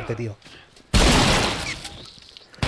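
A shotgun fires once with a loud blast.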